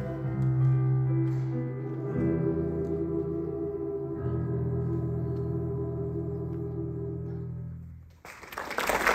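A large choir sings a long held chord in a hall.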